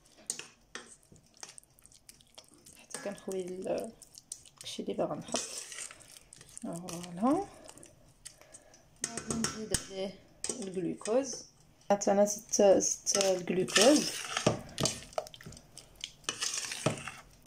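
A metal spoon scrapes and clinks against a pot while stirring a thick mixture.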